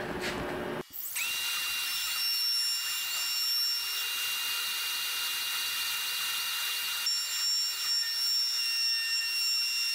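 A spindle whines steadily as a cutting machine mills wood.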